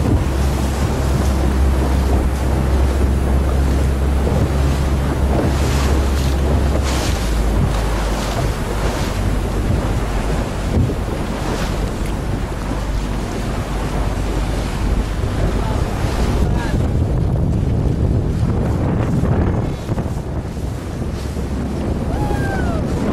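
Choppy water splashes against a sailboat's hull.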